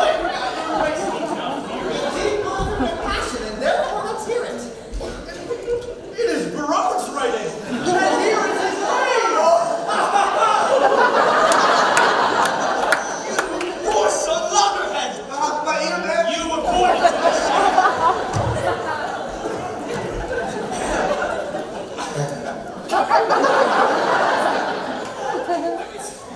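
Young actors speak loudly and with animation on a stage, in a large hall.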